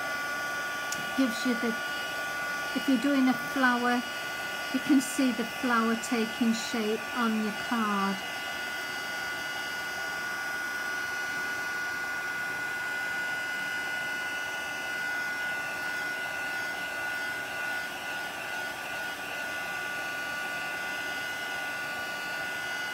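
A heat gun blows with a steady whirring hum.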